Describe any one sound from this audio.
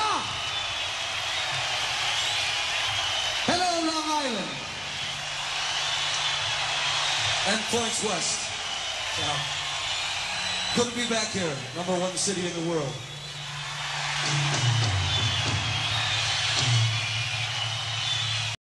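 A large crowd cheers and shouts steadily.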